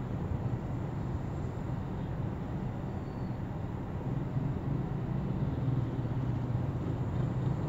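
Engines idle and rumble low in slow city traffic.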